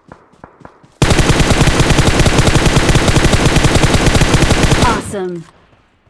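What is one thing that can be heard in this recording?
A rifle fires in a long, rapid automatic burst.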